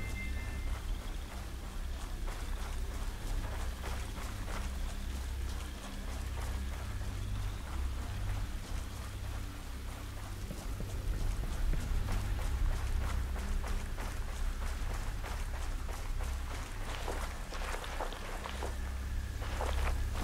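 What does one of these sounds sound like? Footsteps run over rough ground.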